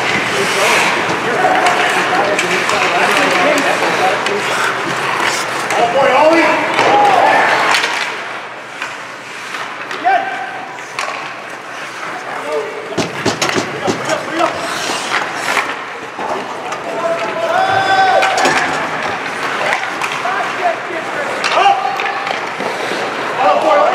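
Skate blades scrape and hiss on ice.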